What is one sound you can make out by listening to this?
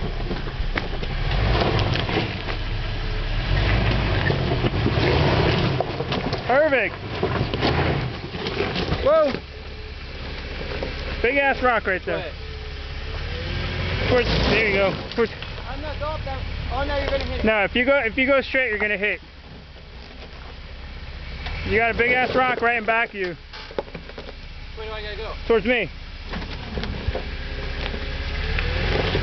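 An off-road vehicle's engine rumbles low and steady.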